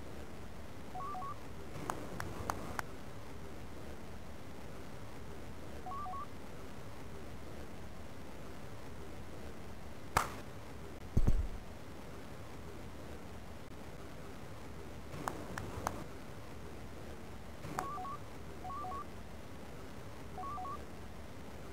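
Short electronic beeps sound in pairs.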